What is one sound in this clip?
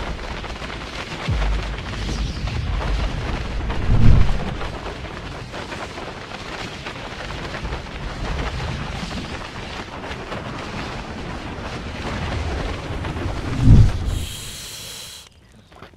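Wind rushes loudly past, roaring steadily.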